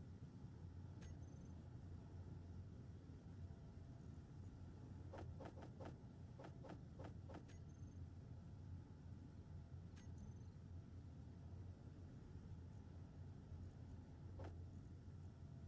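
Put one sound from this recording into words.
Short interface clicks sound as menu items are picked.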